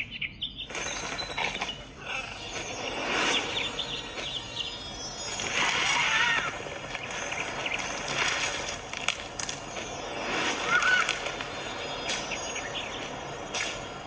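Game sound effects chirp, squawk and whoosh from a small tablet speaker.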